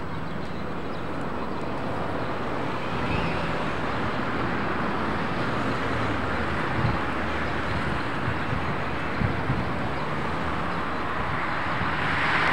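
A passenger train rumbles steadily along the tracks at a distance.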